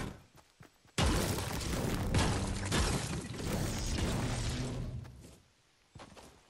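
A pickaxe strikes rock with loud, rapid knocks.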